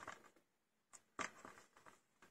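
A plastic case rustles and clicks as hands handle it.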